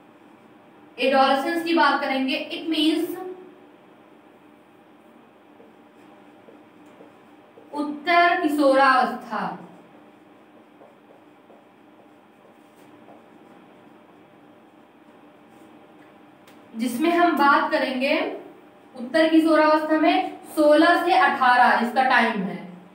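A woman speaks calmly and clearly, close by, in short bursts with pauses.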